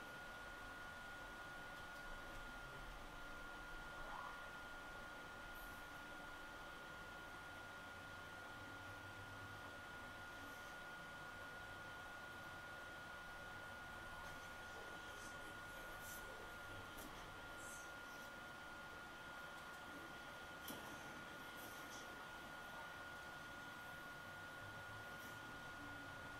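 Lightsabers hum and clash from a television speaker.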